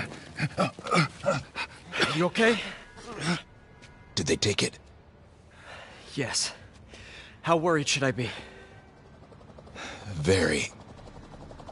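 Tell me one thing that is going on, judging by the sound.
A man speaks tensely and close by.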